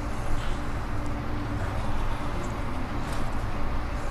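Water sloshes and splashes in a pool.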